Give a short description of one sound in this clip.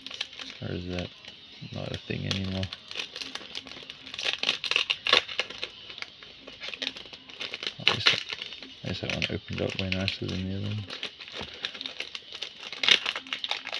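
A foil wrapper crinkles and tears as hands open it close by.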